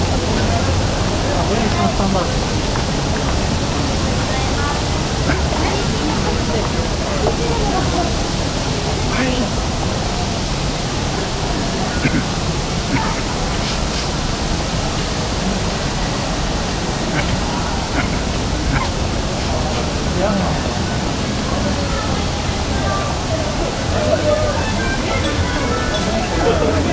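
A crowd of men and women chatters indistinctly nearby outdoors.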